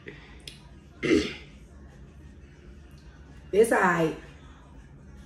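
A young woman exclaims in surprise.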